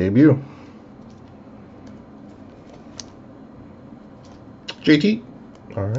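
A plastic card holder rustles and clicks in hands.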